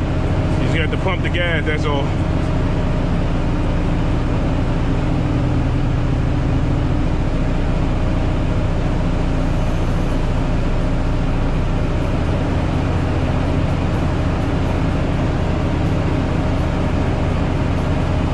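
A truck's tyres hum on the road.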